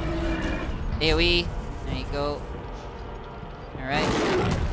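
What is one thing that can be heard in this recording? A magic spell bursts with a shimmering whoosh.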